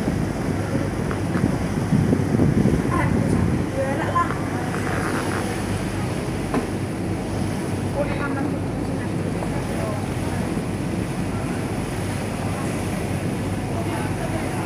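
Choppy water laps and splashes steadily.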